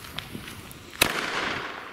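A firework bursts into a loud rushing whoosh.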